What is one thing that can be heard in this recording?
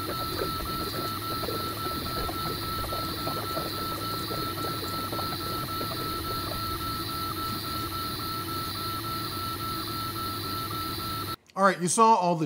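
A laser engraver hums steadily with a thin high whine.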